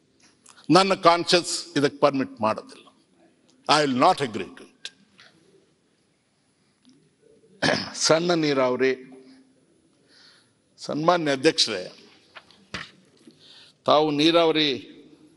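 An elderly man speaks forcefully into a microphone in short bursts, with pauses between them.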